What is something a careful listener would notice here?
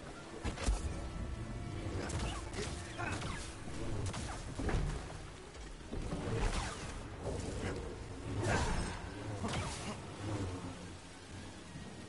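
An energy blade hums and whooshes as it swings.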